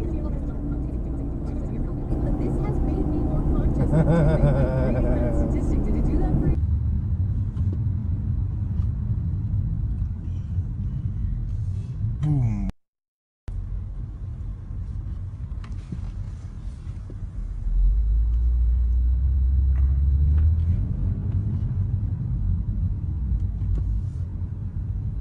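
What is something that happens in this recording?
A car engine hums and tyres rumble on the road from inside a moving car.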